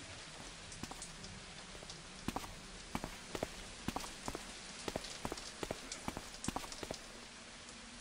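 Footsteps tap quickly on stone cobbles.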